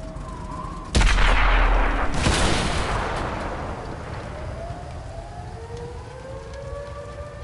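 A loud explosion booms and slowly fades.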